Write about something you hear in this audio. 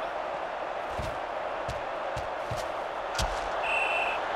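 Football players' pads thud together in a tackle.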